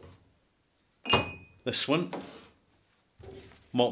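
A glass bottle clinks on a wooden table.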